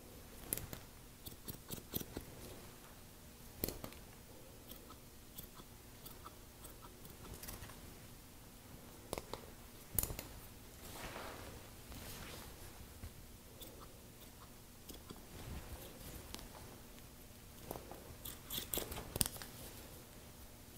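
A comb scrapes through hair.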